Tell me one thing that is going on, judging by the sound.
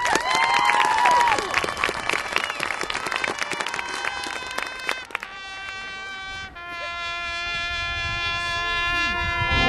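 A marching band plays brass outdoors.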